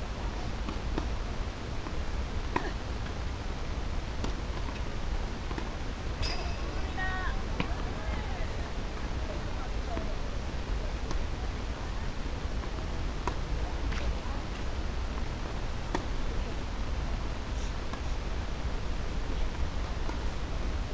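Tennis balls are struck with rackets in a rally.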